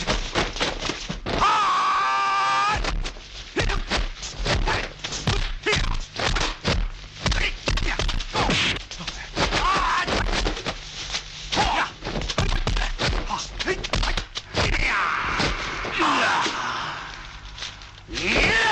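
Punches and kicks land with sharp smacks.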